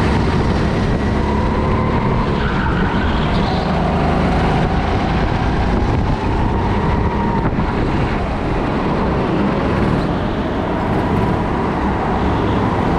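Other go-karts whine in a large echoing hall.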